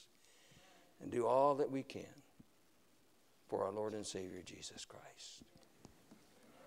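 An elderly man speaks loudly and with animation through a microphone in an echoing hall.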